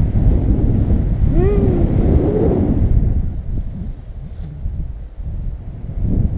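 Wind rushes past a microphone during a paragliding flight.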